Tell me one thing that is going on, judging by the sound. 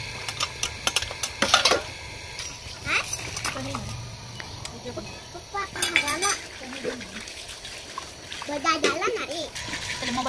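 Metal pots and dishes clink and clatter.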